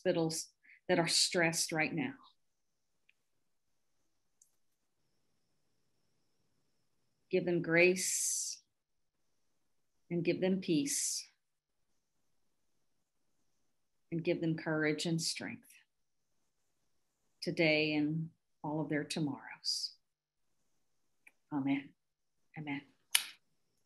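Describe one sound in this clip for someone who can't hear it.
A middle-aged woman speaks calmly in short phrases over an online call, with pauses between them.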